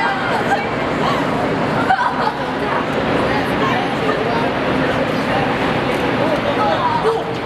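Young women laugh and chatter excitedly in an echoing space.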